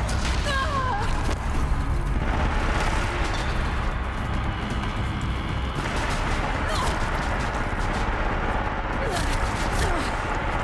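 A bow twangs as it fires.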